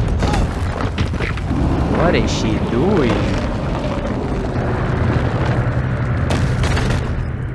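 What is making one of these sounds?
Heavy boulders rumble and crash as they tumble down.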